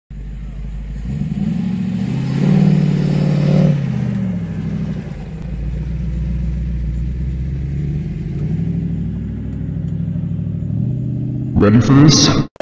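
An old car engine rumbles as the car drives slowly past.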